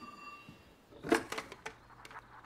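A telephone handset clatters as it is picked up.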